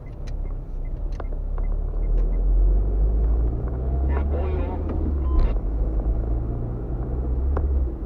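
A car drives along a wet road, heard from inside the car as a low rumble.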